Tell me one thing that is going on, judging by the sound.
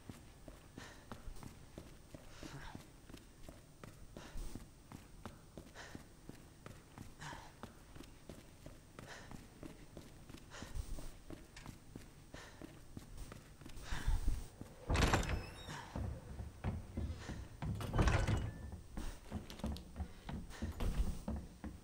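Footsteps thud steadily on hard floor and stairs.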